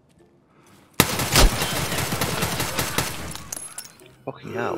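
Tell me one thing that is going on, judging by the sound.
Rapid gunshots fire in a loud burst.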